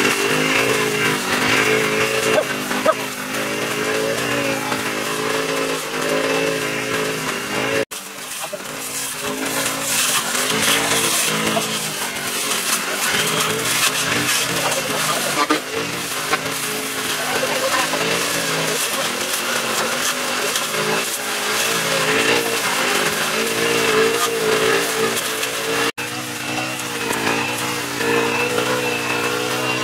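A string trimmer line whips and slashes through dry weeds.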